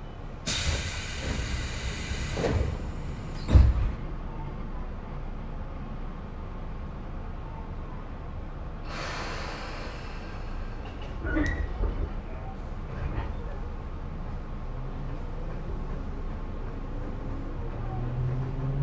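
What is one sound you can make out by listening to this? A train rumbles slowly along the tracks.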